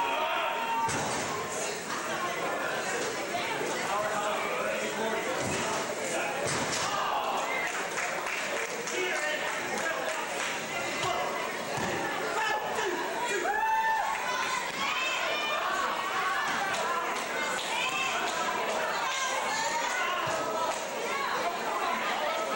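Wrestlers thud onto a ring mat.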